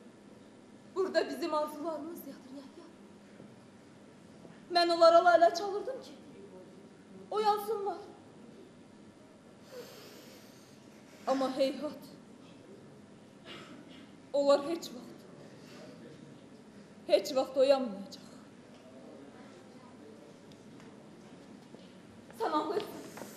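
A woman speaks out in short, emotional bursts with pauses between, heard from a distance in a large echoing hall.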